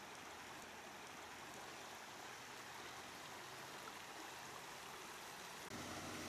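Water bubbles up from a drain cover in a flooded street.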